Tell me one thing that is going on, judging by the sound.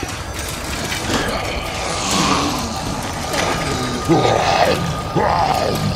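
A zombie groans and snarls behind a wire fence.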